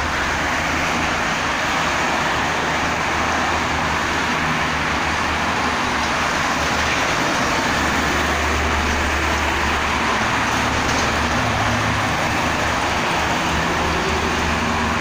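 Steady traffic roars past on a busy highway.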